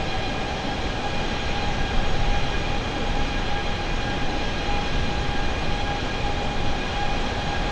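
Jet engines roar steadily with a high whine.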